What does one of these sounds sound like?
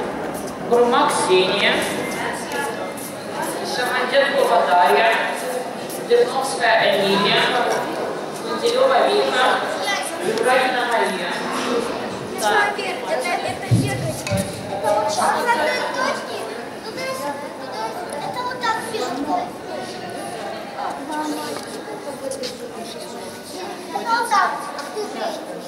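A young woman speaks into a microphone, heard through a loudspeaker in an echoing hall.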